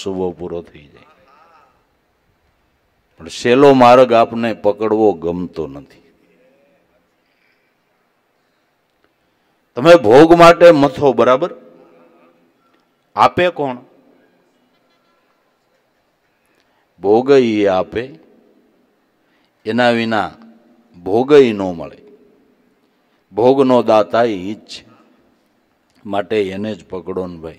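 An older man speaks calmly into a microphone, in phrases with long pauses.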